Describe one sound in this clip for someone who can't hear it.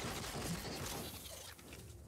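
A pickaxe strikes rock with sharp knocks.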